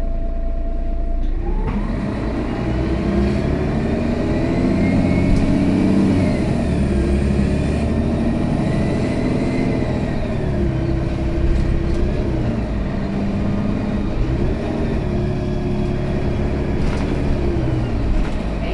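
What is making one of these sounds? A bus rattles and creaks over the road.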